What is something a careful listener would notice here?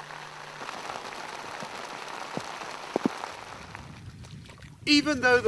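Shallow water flows and ripples steadily over rock outdoors.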